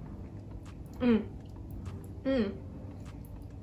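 A young woman hums thoughtfully.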